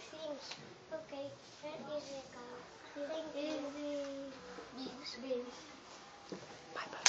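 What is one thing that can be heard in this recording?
Young children sing and talk close by.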